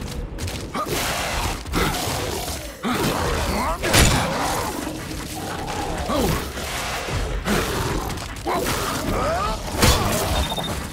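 Heavy blows thud against a creature's body.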